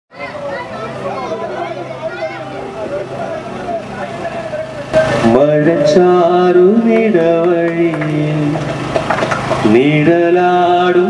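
A young man sings loudly into a microphone.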